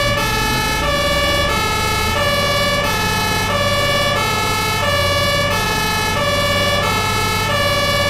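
A siren wails steadily in two alternating tones.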